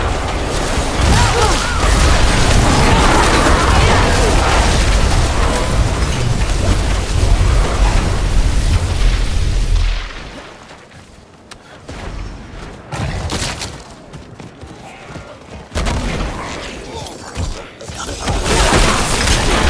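Magic spells crackle and boom in a fight.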